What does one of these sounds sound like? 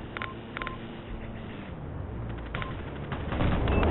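A short electronic menu beep sounds.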